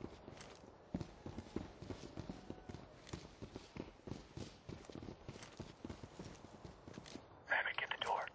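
Footsteps shuffle quickly across a hard floor.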